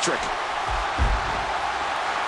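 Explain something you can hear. A body thuds onto a wrestling ring mat.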